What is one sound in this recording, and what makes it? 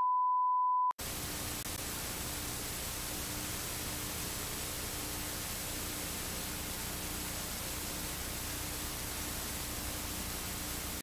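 Television static hisses steadily.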